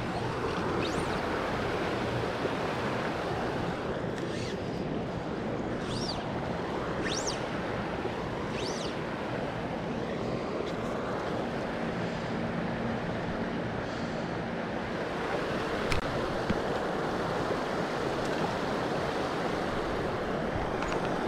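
Water flows and gurgles steadily nearby.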